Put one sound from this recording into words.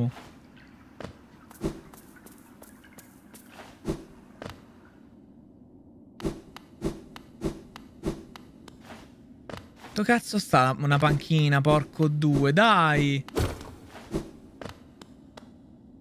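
Footsteps of a game character tap in quick soft clicks.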